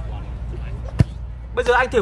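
A ball is kicked with a thud.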